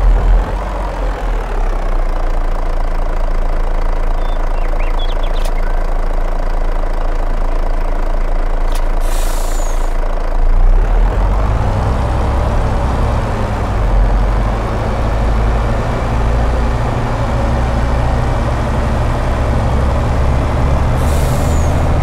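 A truck engine rumbles steadily and grows louder as the truck drives off.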